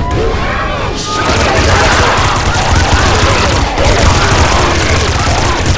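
Laser beams zap and hum.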